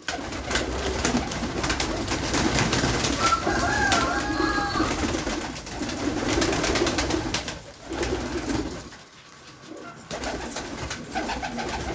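Pigeons flap their wings.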